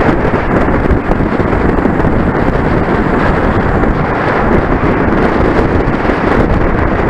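Wind roars loudly across a microphone.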